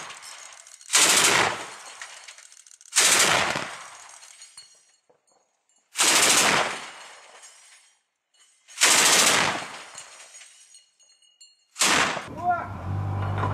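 A truck-mounted anti-aircraft cannon fires single heavy shots that echo outdoors.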